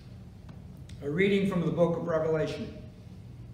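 A man speaks calmly in an echoing room.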